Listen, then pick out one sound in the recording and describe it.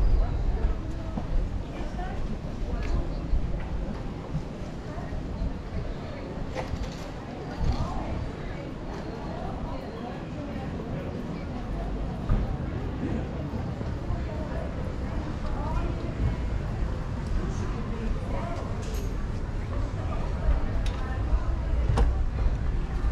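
Footsteps tap on paving stones close by.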